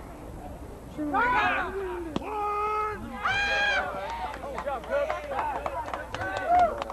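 Men shout loudly outdoors.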